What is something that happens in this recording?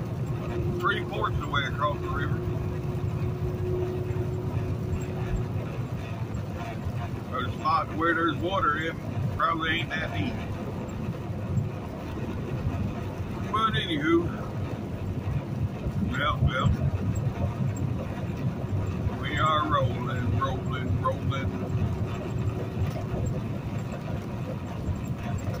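Tyres hiss on a wet road.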